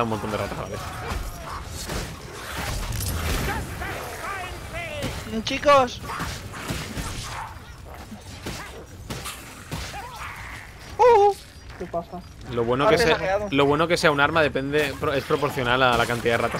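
Weapons clash and slash.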